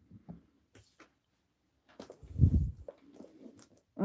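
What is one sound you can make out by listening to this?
A plastic binder slides and thumps on a wooden table.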